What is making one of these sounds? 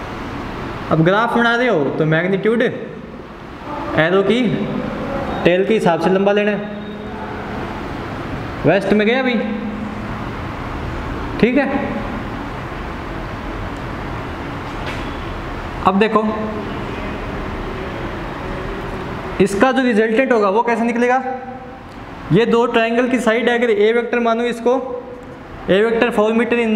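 A young man explains calmly, close by.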